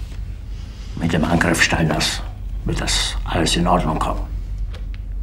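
An elderly man speaks forcefully and close by.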